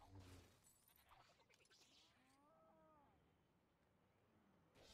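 Plastic bricks shatter and scatter.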